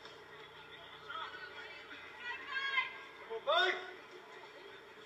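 Men and women on a sideline shout and call out outdoors at a distance.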